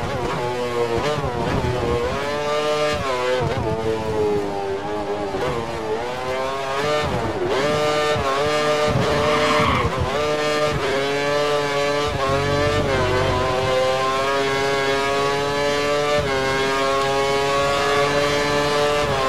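A racing car engine screams, its pitch rising through the gears and dropping sharply at each shift.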